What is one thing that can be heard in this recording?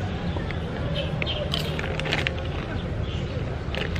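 A young woman crunches on a crisp chip.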